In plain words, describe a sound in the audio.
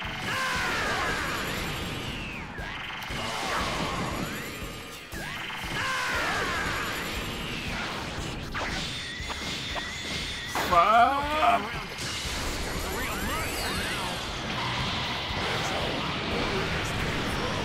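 Energy blasts whoosh and crackle in bursts.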